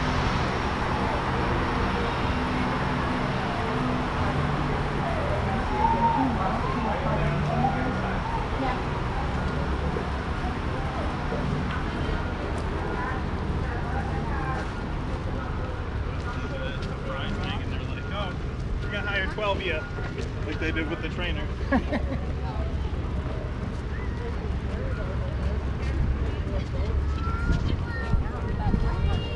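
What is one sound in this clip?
A crowd murmurs and talks in the distance outdoors.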